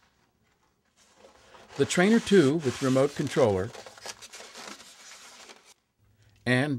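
Foam packing squeaks and rustles as it is lifted out of a cardboard box.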